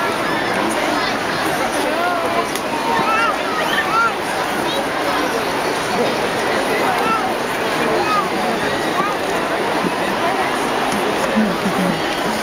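Whistles and cheers ring out from the crowd now and then.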